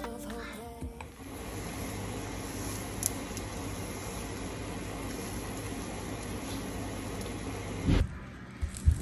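Eggs sizzle softly in a hot pan.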